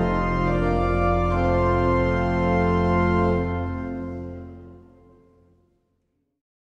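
A pipe organ plays a loud held chord that fades away in a large echoing hall.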